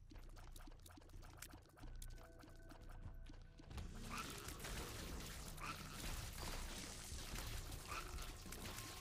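Arcade-style game sound effects pop and splat rapidly.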